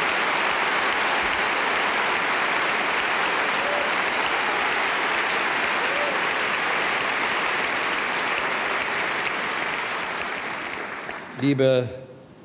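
A large audience applauds loudly in an echoing hall, then the applause fades.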